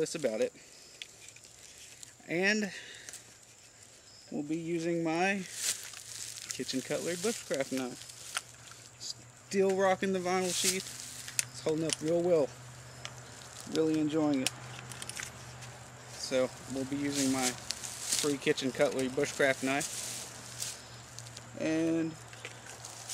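A middle-aged man talks calmly outdoors, close by.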